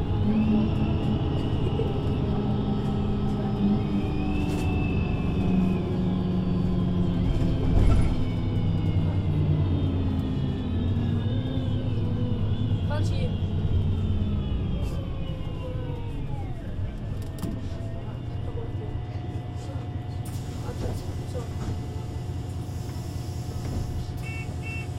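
A bus engine idles with a low, steady hum close by.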